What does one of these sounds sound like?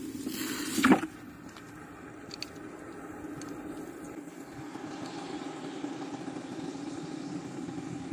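Water bubbles and fizzes steadily in a bucket.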